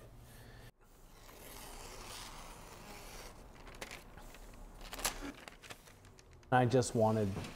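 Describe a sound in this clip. Paper crinkles and rustles as it is torn.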